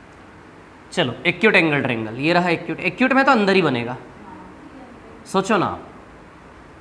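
A man speaks calmly nearby, explaining.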